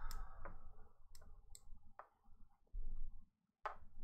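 Game pieces click softly on a board.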